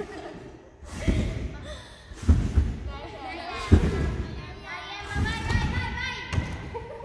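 A gymnast's feet thud on springy mats in an echoing hall.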